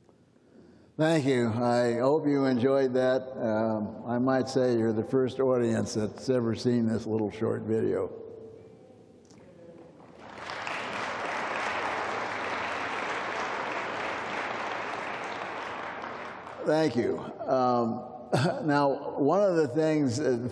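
An elderly man speaks through a microphone in a large hall, calmly and with some animation.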